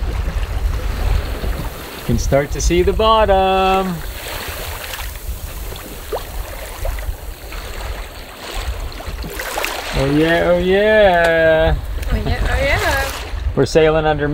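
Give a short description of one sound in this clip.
Waves slosh and splash against a boat's hull.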